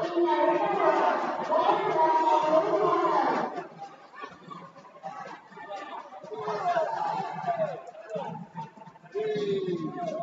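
Kicks thud against a fighter's body.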